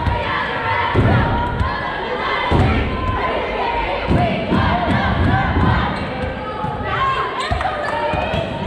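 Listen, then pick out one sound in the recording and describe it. A volleyball thumps as it is hit.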